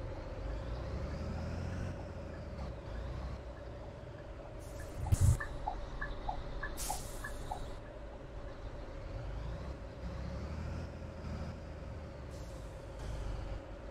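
A bus engine hums and rumbles low, rising and falling.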